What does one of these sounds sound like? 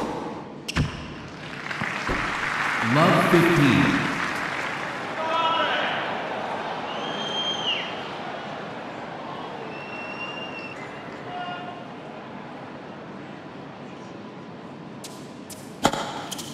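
A crowd murmurs in a large indoor arena.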